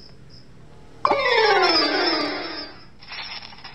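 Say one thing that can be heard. A descending game jingle plays for a loss.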